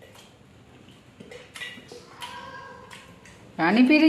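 A young girl gulps a drink from a metal cup.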